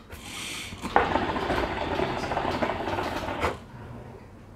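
Water bubbles and gurgles steadily in a hookah.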